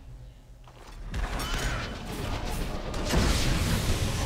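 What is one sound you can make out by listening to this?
Magic blasts crackle and whoosh as fighters clash.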